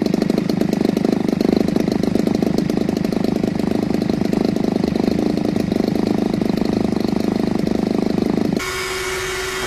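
A small model airplane engine buzzes loudly and steadily up close.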